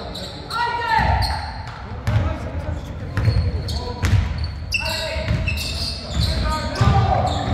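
A basketball bounces repeatedly on a wooden floor, echoing in a large hall.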